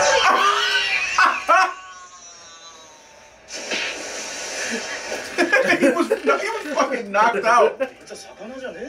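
Two men laugh loudly and heartily close by.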